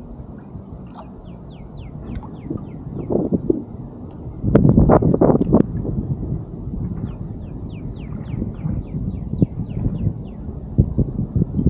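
A fishing reel clicks rapidly as line is wound in.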